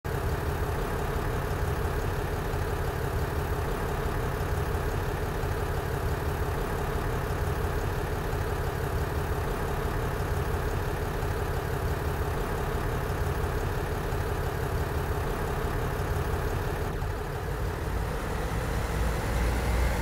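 A diesel train engine idles with a steady low rumble.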